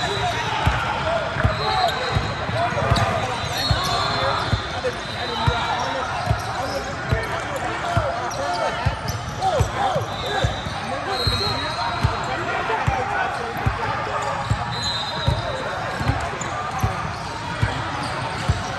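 A basketball bounces on a wooden floor, echoing through a large hall.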